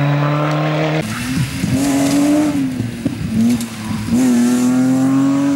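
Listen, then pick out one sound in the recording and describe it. A second rally car engine snarls and shifts through gears.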